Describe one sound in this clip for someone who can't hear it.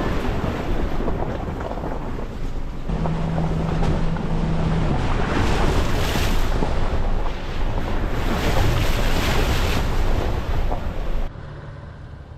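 Footsteps crunch steadily on a wet gravel road.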